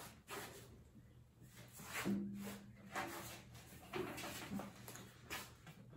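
Potatoes knock together in a metal pot.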